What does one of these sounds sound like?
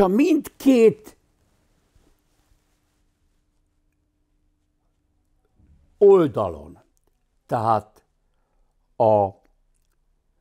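An elderly man speaks with animation into a close microphone, in short bursts with pauses.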